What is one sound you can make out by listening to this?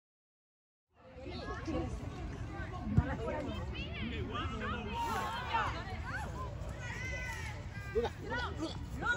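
Spectators close by chatter and cheer.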